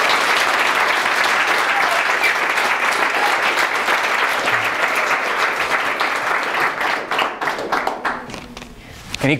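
An audience applauds loudly in a room, then the clapping thins out.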